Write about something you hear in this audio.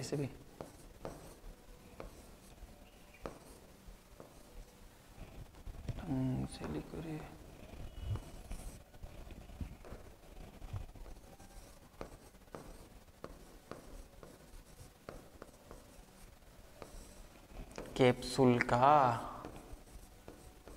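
A pen taps and scratches on a hard board.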